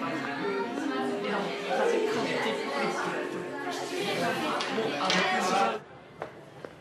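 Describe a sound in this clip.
Teenagers chatter and talk over each other in a lively room.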